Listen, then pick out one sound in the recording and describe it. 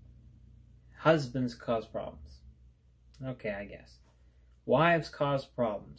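A young man speaks calmly and close by, in short phrases.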